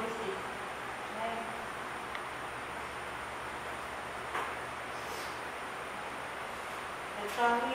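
A young woman reads aloud in short, quiet bursts.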